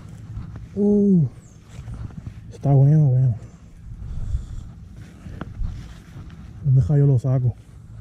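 Bare feet step softly on grass.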